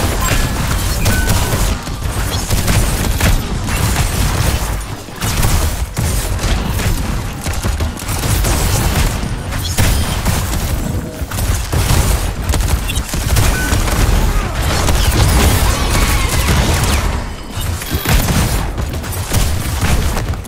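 Game weapons fire in rapid bursts.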